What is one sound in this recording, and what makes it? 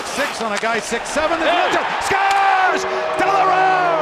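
A large crowd cheers loudly in an echoing arena.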